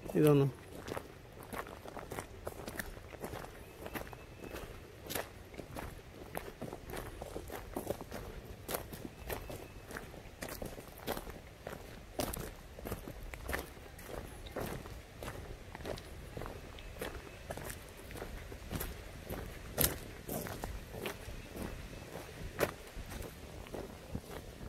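Footsteps crunch steadily on a gravel path.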